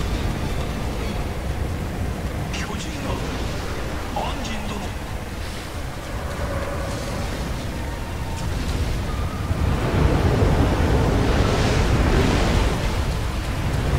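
Flames crackle and roar with a steady low rumble.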